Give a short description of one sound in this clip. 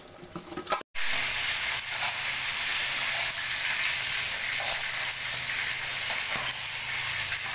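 A pot bubbles at a boil.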